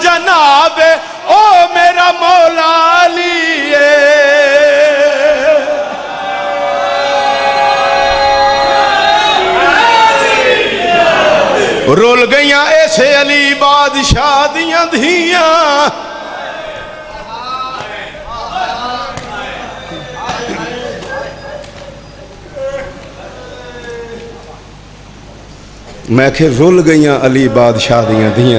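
A man chants loudly in a singing voice through a microphone, in an echoing hall.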